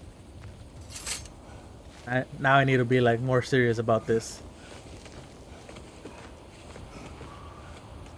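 Armour and gear rustle and scrape against rock.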